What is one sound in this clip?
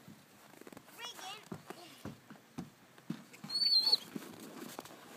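Puppies yelp and whine.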